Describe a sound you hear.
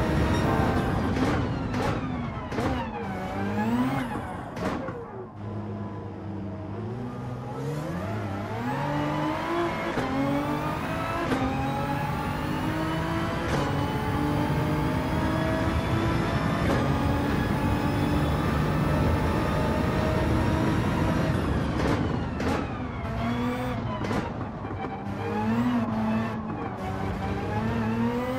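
A racing car engine roars, rising in pitch as it speeds up and dropping sharply with each gear change and braking.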